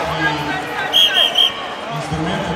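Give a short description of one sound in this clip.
A referee blows a whistle in short sharp blasts.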